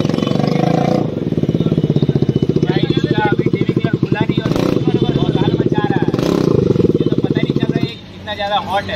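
A motorcycle engine idles with a rapid throbbing putter.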